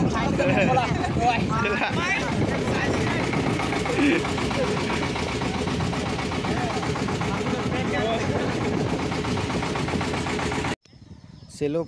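A boat engine rumbles loudly and steadily.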